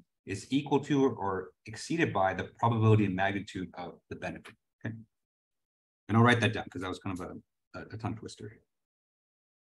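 A young man talks calmly into a close microphone, as if lecturing over an online call.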